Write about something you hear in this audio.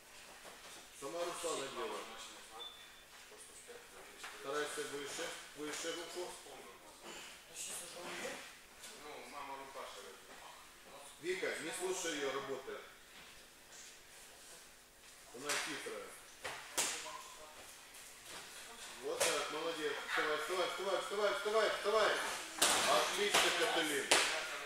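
A man talks calmly nearby in a large echoing hall.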